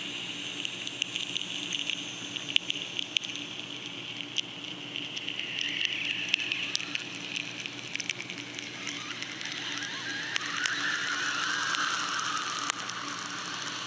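A gas torch flame crackles and pops.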